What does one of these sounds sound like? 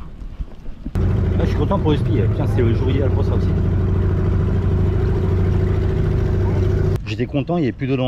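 An outboard motor hums steadily.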